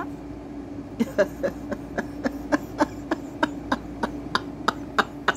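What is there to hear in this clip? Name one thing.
A middle-aged woman laughs softly.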